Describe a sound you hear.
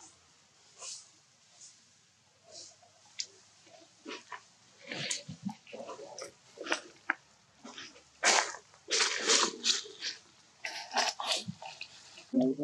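A monkey picks through another monkey's fur with soft rustling.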